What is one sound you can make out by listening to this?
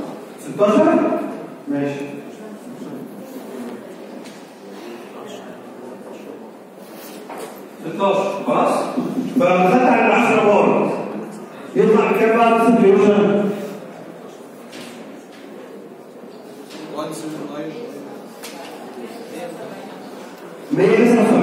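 A young man speaks through a microphone into a loudspeaker, calmly explaining, in an echoing hall.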